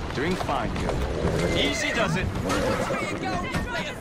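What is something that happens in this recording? Horse hooves clatter on cobblestones.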